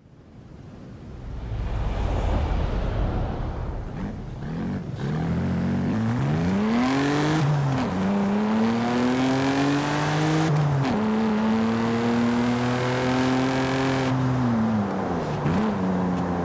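A car engine revs hard, rising in pitch and dropping as it shifts gears.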